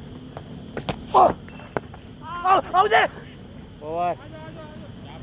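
Men shout loudly outdoors.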